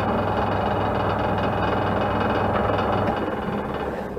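A chisel scrapes and shaves wood on a spinning lathe, then eases off.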